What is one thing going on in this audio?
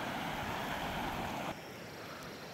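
A stream burbles over rocks.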